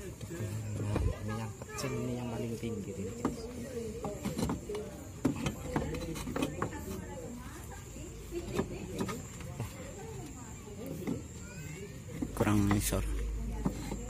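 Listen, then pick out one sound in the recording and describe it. Wooden boards knock and scrape against a roof.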